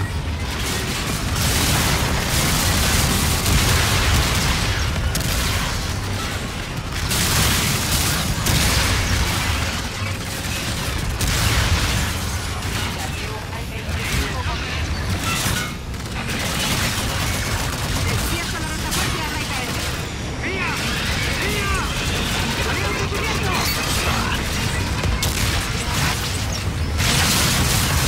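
Explosions boom and crash.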